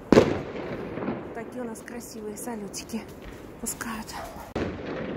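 A woman talks close by, with animation.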